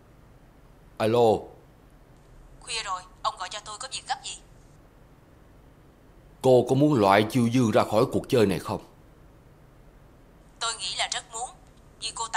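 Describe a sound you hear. An elderly man speaks into a phone in an anxious, urgent voice.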